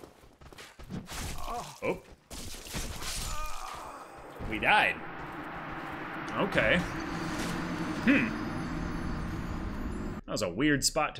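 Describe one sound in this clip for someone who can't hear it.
Swords clash and armour clanks in a game fight.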